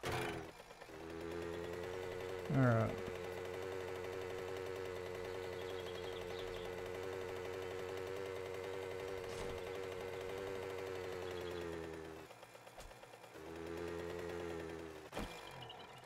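A small motorbike engine hums steadily, dropping away briefly and returning.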